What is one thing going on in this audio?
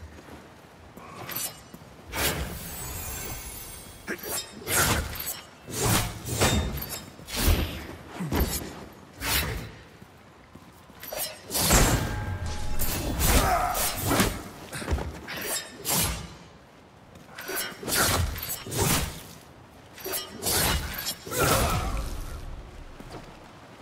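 Swords clash and slash in quick, repeated strikes.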